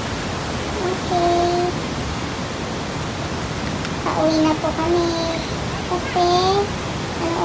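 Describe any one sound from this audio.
A young woman speaks casually nearby.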